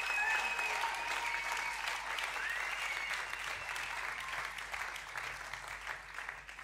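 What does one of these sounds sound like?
A crowd cheers and whistles in a large hall.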